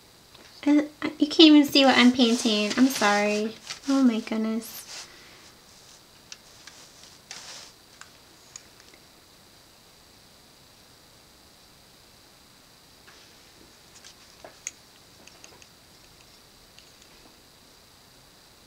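A paintbrush softly dabs and strokes on paper.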